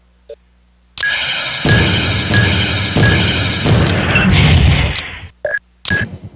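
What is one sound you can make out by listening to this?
An explosion booms and rumbles loudly.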